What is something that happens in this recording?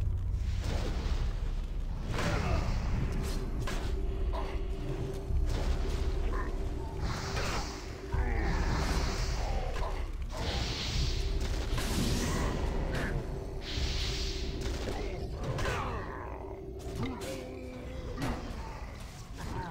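Magic spells burst with loud whooshes.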